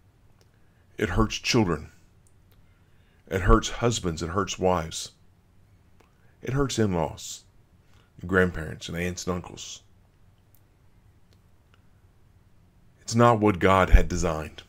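A middle-aged man speaks calmly and closely into a microphone, in short phrases with pauses.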